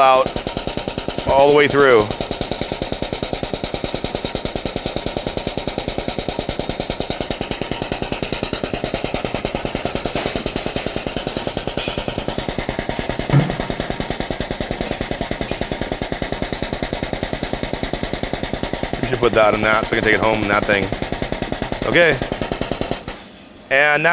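A pump motor hums and pulses rapidly and steadily.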